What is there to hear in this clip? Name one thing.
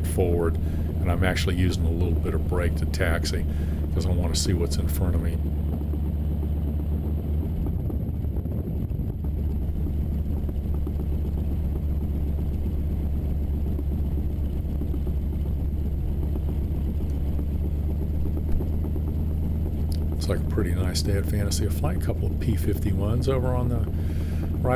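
A small propeller plane's engine drones steadily up close.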